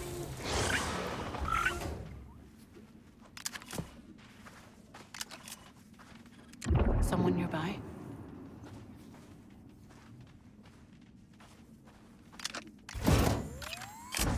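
Footsteps scuff softly across a gritty floor.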